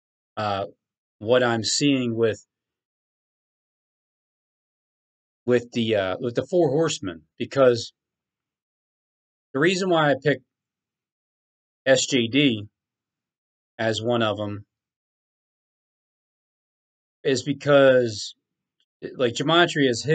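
A man talks calmly into a microphone, in bursts with pauses.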